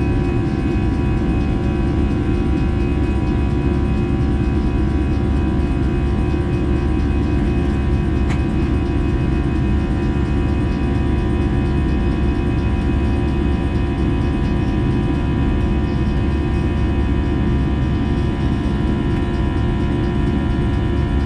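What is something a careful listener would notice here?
Jet engines roar steadily from inside an airliner cabin.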